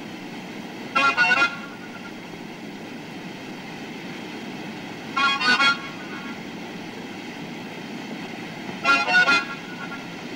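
A harmonica plays short bursts of chords, a few seconds apart.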